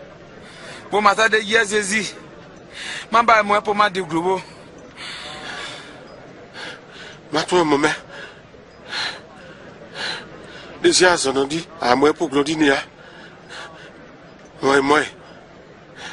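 A man cries out in a strained, pained voice.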